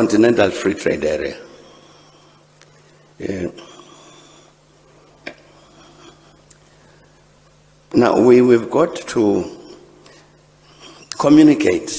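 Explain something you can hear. An elderly man speaks slowly and deliberately into a microphone, with long pauses.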